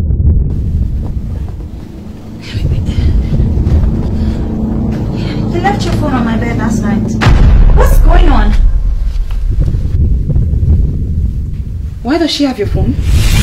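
A young woman speaks with emotion nearby.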